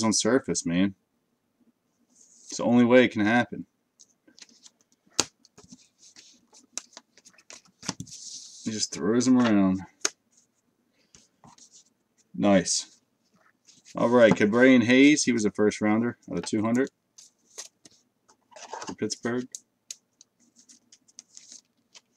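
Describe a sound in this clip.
Plastic wrappers crinkle as cards are handled.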